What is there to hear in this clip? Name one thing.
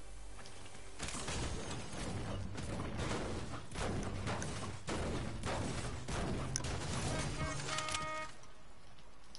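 A pickaxe strikes metal again and again in quick blows.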